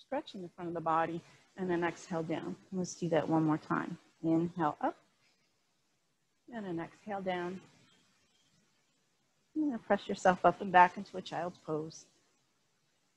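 A woman speaks calmly, giving instructions through a microphone.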